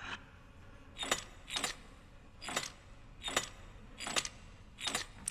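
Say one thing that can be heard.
A combination dial clicks sharply as it turns.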